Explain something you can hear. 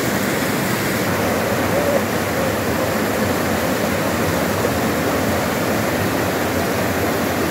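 Water rushes and splashes loudly down a small rocky cascade.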